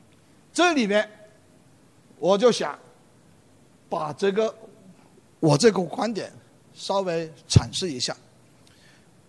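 An elderly man lectures in short phrases through a microphone.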